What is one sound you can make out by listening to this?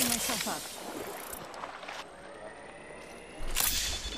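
A hissing, whirring healing device runs.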